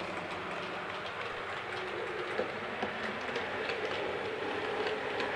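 A model train rumbles steadily along its track, with light rhythmic clicks.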